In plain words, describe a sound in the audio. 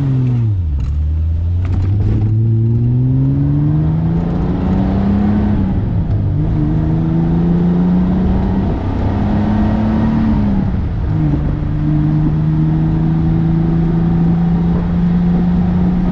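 A car engine hums loudly from inside and rises and falls in pitch as the car shifts gears.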